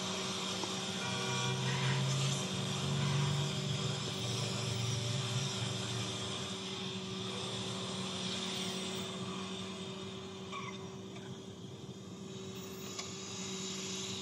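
A car engine roars from a small phone speaker.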